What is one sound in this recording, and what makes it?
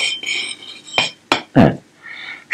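A rifle part knocks onto a wooden table.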